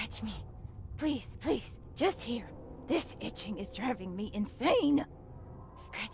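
A young woman pleads desperately, close by.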